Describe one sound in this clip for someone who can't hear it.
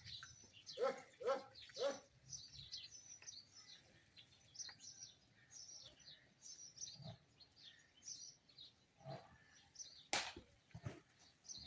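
Cattle shift and shuffle about on dirt.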